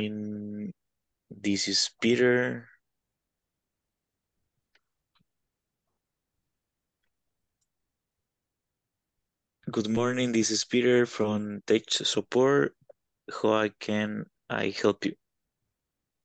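A man speaks clearly over an online call, with pauses between phrases.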